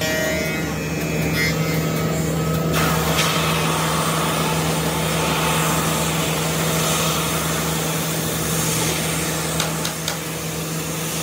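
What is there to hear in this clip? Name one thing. A wide belt sanding machine hums loudly and steadily.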